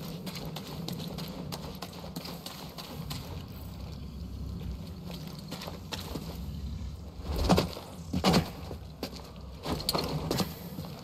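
Footsteps crunch on grass and earth.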